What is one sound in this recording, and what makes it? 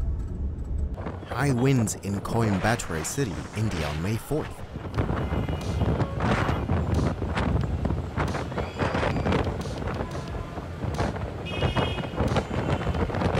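Strong wind roars and gusts outdoors.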